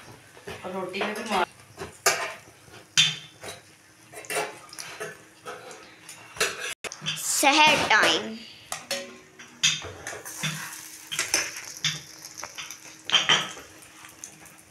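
Oil sizzles softly in a frying pan.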